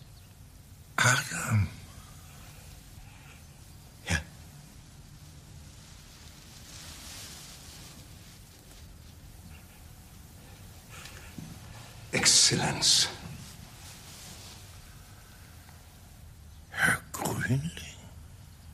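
An older man speaks weakly and hoarsely, close by.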